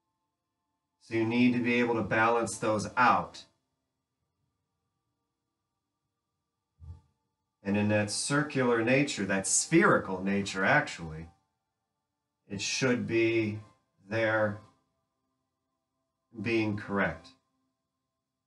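A man speaks calmly and instructively, heard close by.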